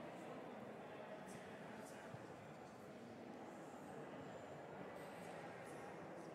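A crowd of people murmurs softly in a large echoing hall.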